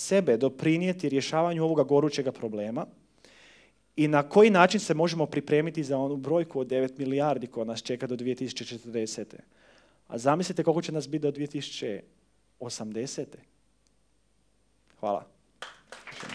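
A young man speaks calmly into a microphone in a large hall.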